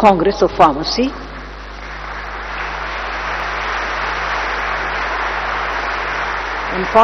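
An elderly woman speaks slowly into a microphone over loudspeakers.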